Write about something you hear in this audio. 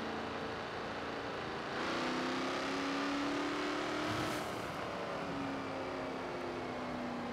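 A car engine roars as it speeds up, its pitch rising, then eases off.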